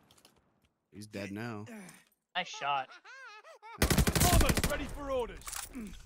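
A gun's magazine clicks and rattles as a weapon is reloaded.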